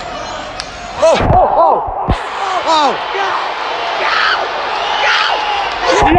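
Fans shout and cheer loudly nearby.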